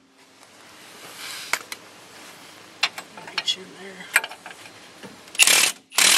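A hand ratchet clicks as a bolt is turned.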